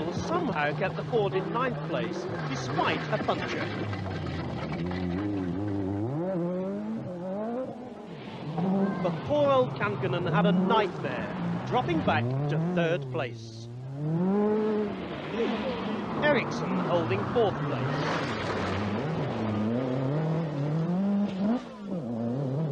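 A rally car engine revs loudly and roars past.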